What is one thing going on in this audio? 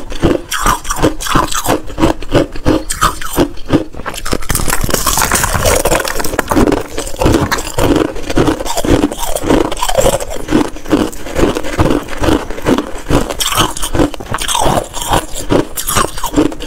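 Ice crunches loudly and crackles close up as it is chewed.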